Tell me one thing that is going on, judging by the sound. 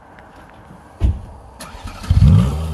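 A sports car engine starts with a roar.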